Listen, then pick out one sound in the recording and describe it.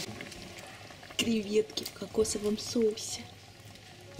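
A wooden spoon stirs a thick stew in a pot.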